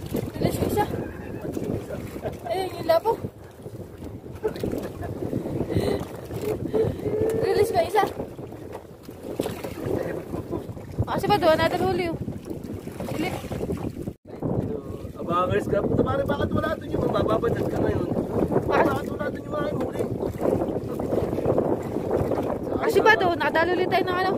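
Waves splash against a small boat.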